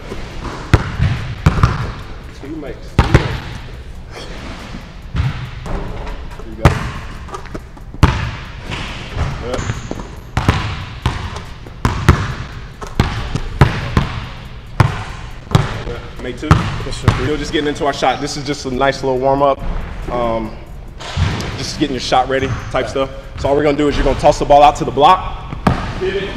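Basketballs bounce sharply on a hard floor in a large echoing hall.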